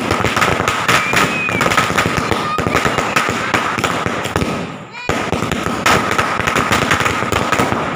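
A firework fountain hisses as it sprays sparks.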